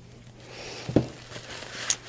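A small stick is set down on a table with a light knock.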